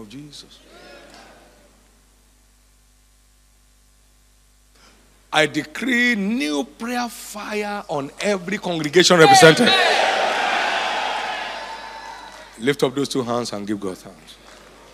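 A man preaches loudly and with fervour through a microphone in a large echoing hall.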